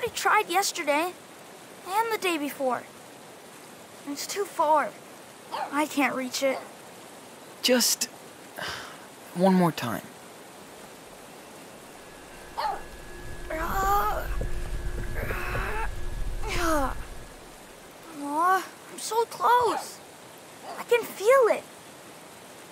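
A young boy speaks with pleading urgency.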